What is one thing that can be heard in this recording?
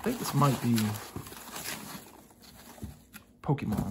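A plastic foam wrap crinkles as it is handled.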